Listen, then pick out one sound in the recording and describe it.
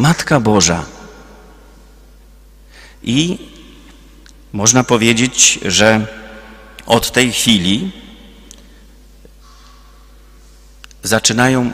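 A middle-aged man speaks slowly and calmly through a microphone, with pauses, in an echoing hall.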